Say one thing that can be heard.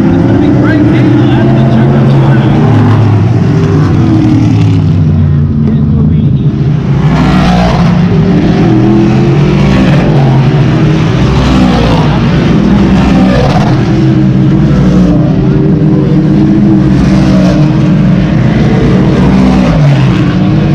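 Race car engines roar loudly as cars speed around a dirt track.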